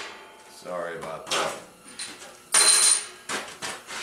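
Metal pieces clank on a steel table.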